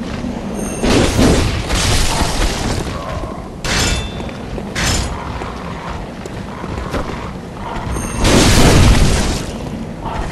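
A blade whooshes through the air and strikes with heavy thuds.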